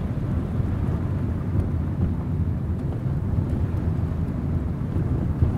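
A car engine rumbles low and steady from inside.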